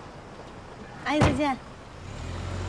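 A young woman says goodbye cheerfully.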